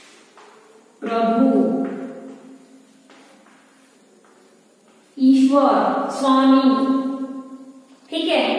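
A woman speaks clearly and calmly, as if teaching.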